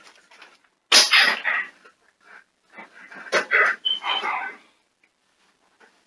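A metal bunk bed rattles and creaks as someone climbs onto it.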